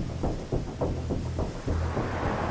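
A man knocks on a wooden gate.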